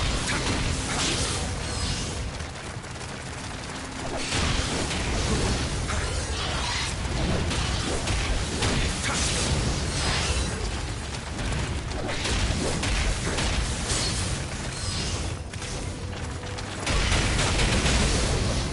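Blades clash and strike with sharp metallic clangs in a fast fight.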